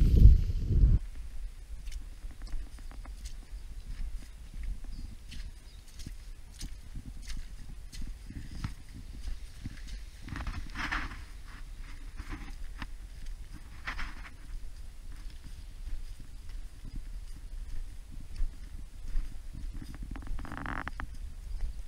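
Footsteps crunch and scrape on rock and gravel.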